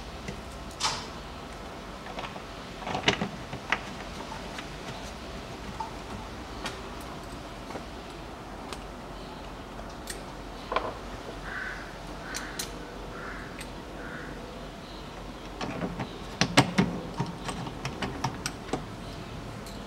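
Small plastic parts click and rattle close by.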